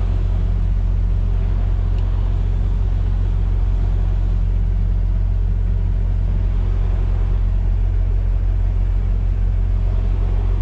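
A large truck engine rumbles steadily from inside the cab.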